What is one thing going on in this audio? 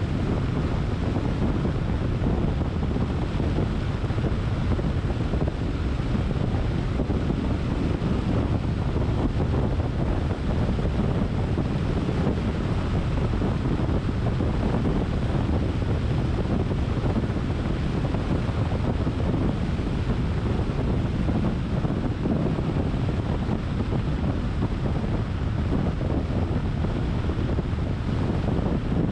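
Tyres roll steadily over asphalt with a low rumble.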